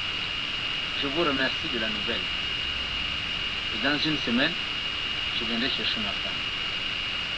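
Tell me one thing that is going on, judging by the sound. An older man speaks in a low, serious voice, close by.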